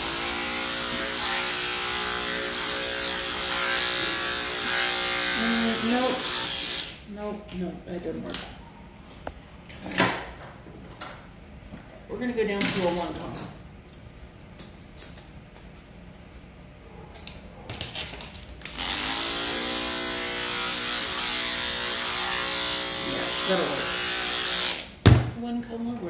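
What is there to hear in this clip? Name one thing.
Electric hair clippers buzz steadily up close.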